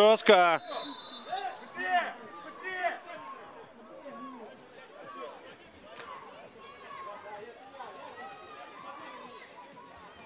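Football players shout to each other in the distance outdoors.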